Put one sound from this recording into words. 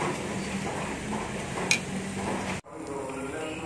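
A charcoal fire crackles under a grill.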